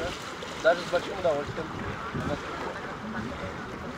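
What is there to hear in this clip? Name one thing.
Water splashes as a man wades out of shallow water.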